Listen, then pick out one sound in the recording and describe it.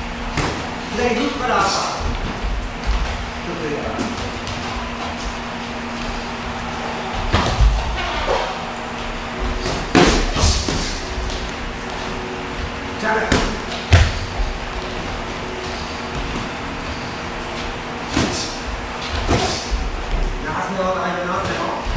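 A man breathes hard and grunts while punching.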